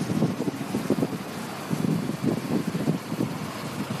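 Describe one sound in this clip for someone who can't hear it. A bus drives past.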